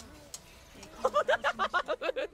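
A young man laughs loudly in bursts into a microphone.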